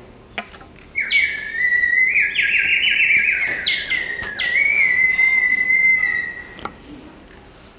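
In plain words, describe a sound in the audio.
A woman plays a high whistling tune on a small wind instrument.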